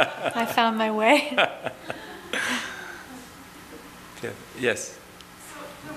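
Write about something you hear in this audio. A middle-aged woman laughs softly nearby.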